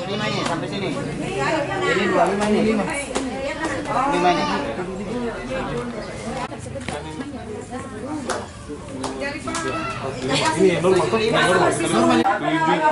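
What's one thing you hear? Several men talk nearby with animation.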